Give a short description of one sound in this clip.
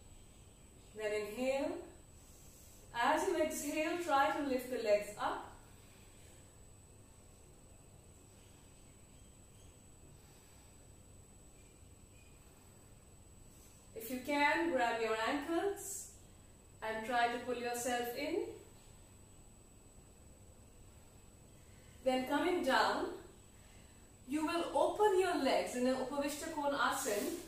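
A woman speaks calmly and close by, giving short instructions with pauses.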